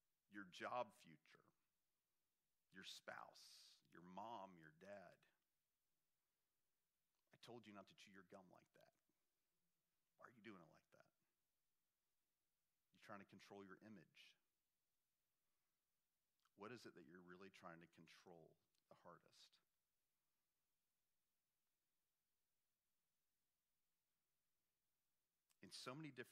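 A middle-aged man speaks calmly into a microphone in short phrases, with long pauses.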